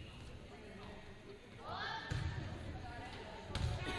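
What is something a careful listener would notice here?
A volleyball is struck by hand in an echoing gym.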